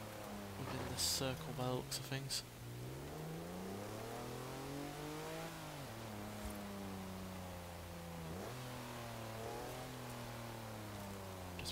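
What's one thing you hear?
A truck engine drones, rising and falling in pitch as it revs.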